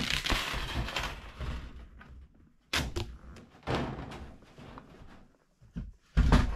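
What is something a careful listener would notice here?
Wire mesh rattles and scrapes across a wooden floor.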